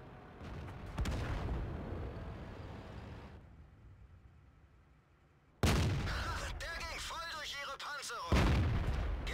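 A tank cannon fires with loud, sudden booms.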